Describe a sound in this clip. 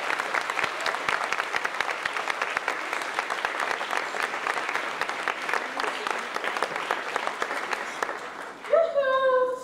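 A young woman sobs.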